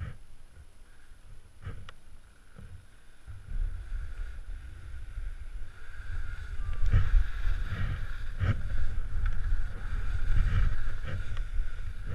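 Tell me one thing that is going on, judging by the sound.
Skis scrape and hiss over crusty snow.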